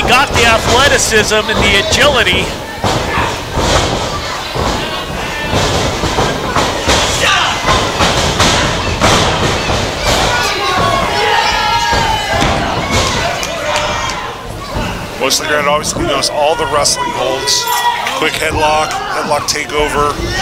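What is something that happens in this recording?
A crowd cheers and shouts in an echoing hall.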